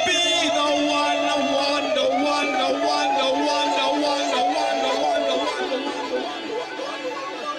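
A band plays along.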